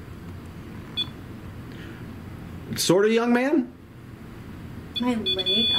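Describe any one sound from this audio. A handheld device beeps briefly.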